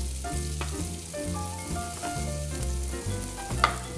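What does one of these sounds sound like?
A metal spoon scrapes and stirs in a frying pan.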